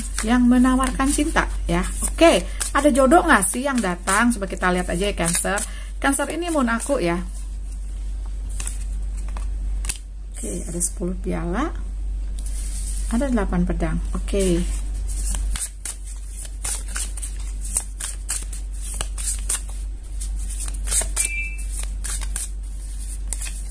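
Playing cards rustle and slide against each other as they are shuffled.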